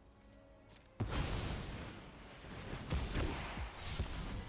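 A magical shimmering whoosh sounds.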